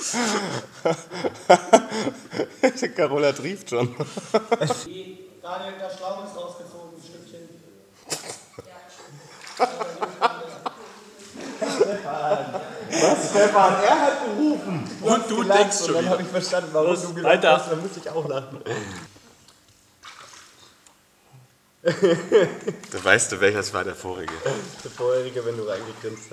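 A young man talks and laughs softly, close by.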